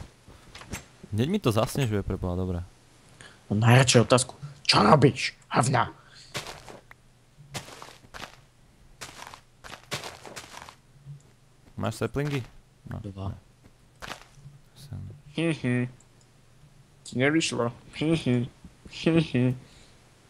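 A pickaxe chips at stone in quick, dry knocks.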